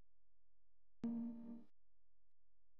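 A young man sings briefly.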